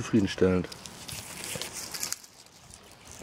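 Dry leaves rustle as someone brushes past plants.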